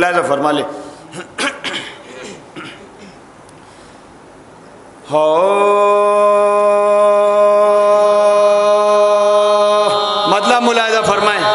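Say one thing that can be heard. A man chants through a microphone, holding a long, steady note.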